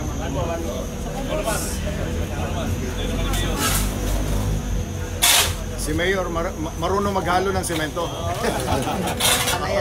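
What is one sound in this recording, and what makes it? A shovel scrapes through wet cement on concrete.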